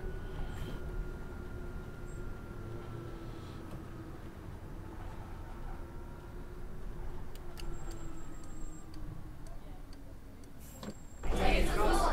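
A bus engine hums steadily and winds down as the bus slows to a stop.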